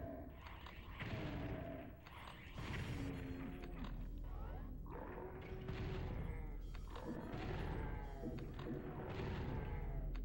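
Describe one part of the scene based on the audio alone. Gunshots from a game blast in quick bursts.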